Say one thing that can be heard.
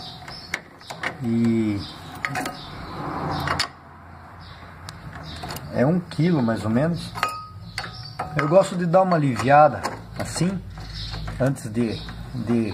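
A metal tool clicks and taps against engine parts.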